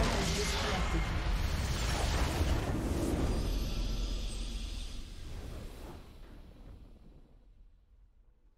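A triumphant victory fanfare swells and then fades away.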